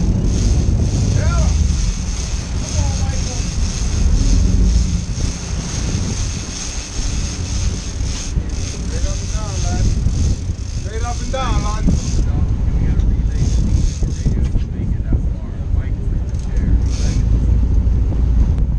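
A boat engine rumbles steadily.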